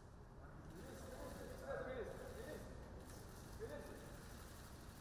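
A woman speaks briefly in a quiet voice nearby.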